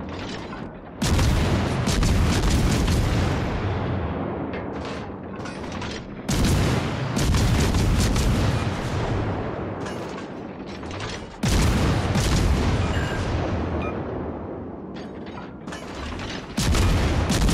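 Heavy naval guns fire thundering salvos that rumble and fade.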